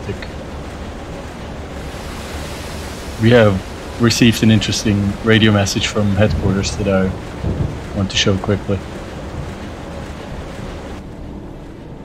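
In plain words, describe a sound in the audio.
Rough sea waves rush and splash against a boat's hull.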